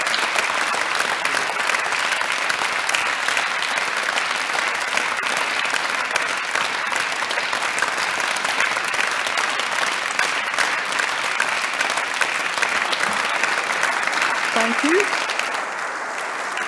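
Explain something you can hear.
A crowd applauds steadily in a large hall, then stops.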